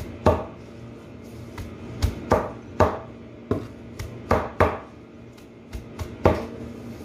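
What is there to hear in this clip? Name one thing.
A cleaver chops leafy greens on a board with sharp, uneven knocks.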